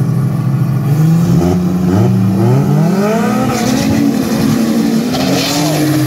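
A car engine revs hard again and again, rising in pitch.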